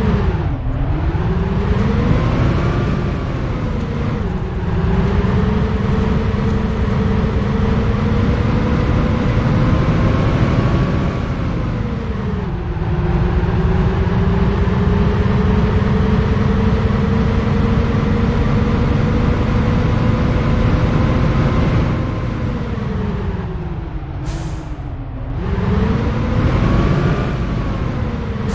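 A bus engine hums and whines, rising and falling in pitch as the bus speeds up and slows down.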